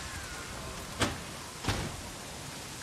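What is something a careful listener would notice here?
A door latch clicks sharply.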